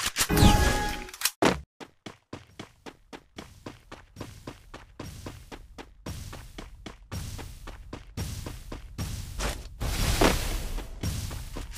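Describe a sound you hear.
Footsteps patter quickly on the ground.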